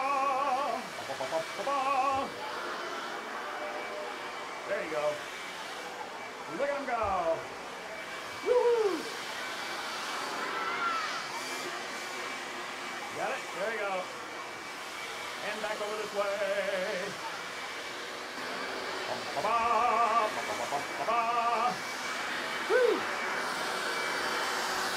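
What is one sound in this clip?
A man speaks with animation to a crowd of children.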